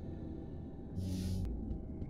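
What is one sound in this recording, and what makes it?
A game menu makes a whooshing sound as it switches pages.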